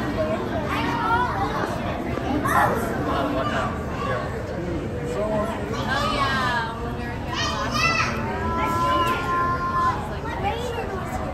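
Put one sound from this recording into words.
A murmur of many voices fills an echoing hall.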